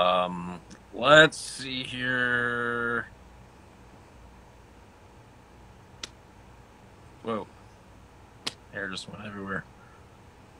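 A man talks casually and close up, with pauses, through a phone microphone.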